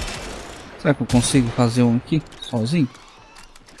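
Energy weapon blasts crackle and boom in quick bursts.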